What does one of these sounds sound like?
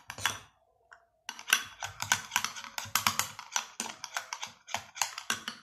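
A spoon clinks rapidly against a glass bowl while stirring.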